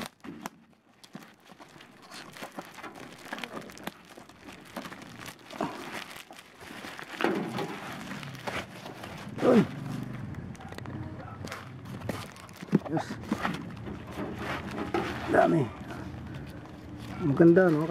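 Bubble wrap and plastic crinkle and rustle as hands handle a package.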